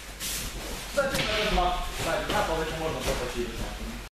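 Teenage boys talk nearby in an echoing hall.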